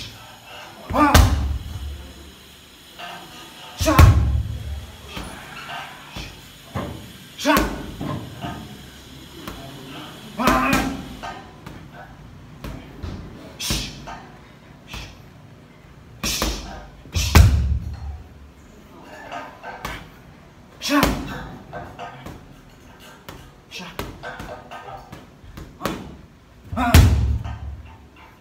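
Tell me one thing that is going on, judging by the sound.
Kicks and punches thud heavily against a punching bag.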